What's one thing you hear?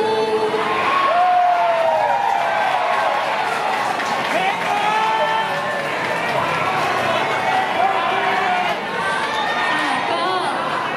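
Young women talk into microphones through loudspeakers in a large echoing hall.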